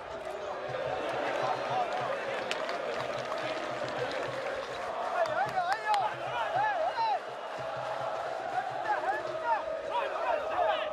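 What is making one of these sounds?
A crowd cheers and shouts in an open stadium.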